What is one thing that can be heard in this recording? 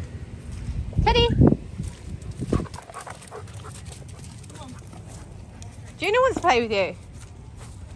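A dog whines and yowls close by.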